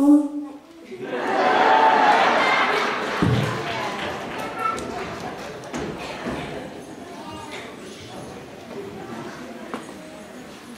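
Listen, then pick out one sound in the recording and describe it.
An audience claps and cheers in a large hall.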